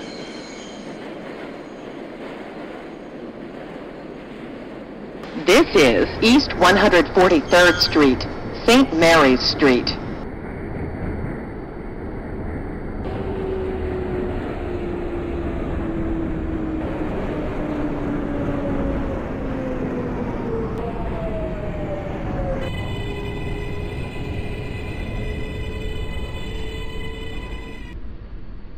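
A subway train rumbles along the tracks.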